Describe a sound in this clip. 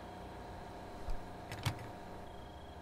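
A fuel nozzle clunks as it is lifted from a pump.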